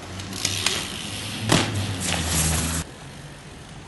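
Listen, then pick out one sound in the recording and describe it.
A person stumbles and thuds against a low wall.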